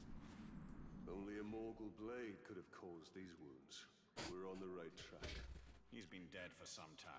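A man's voice speaks calmly in a low tone.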